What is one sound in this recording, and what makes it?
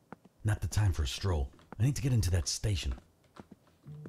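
A man speaks briefly with animation into a close microphone.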